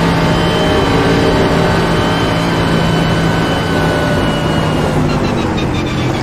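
A racing car engine roars loudly at high revs, its pitch slowly dropping.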